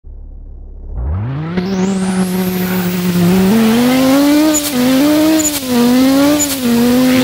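A racing car engine revs up and roars, its pitch rising and dropping with each gear change.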